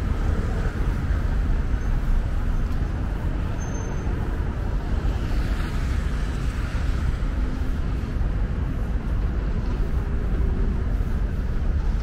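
City traffic rumbles steadily along a street nearby.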